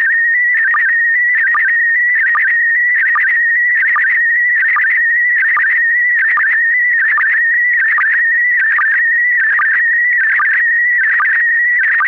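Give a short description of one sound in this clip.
A high electronic tone beeps on and off in a quick repeating pattern, like Morse code from a keyer.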